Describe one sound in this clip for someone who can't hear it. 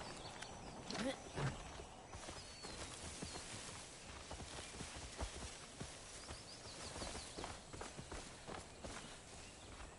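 Footsteps rustle through dry grass and leafy brush.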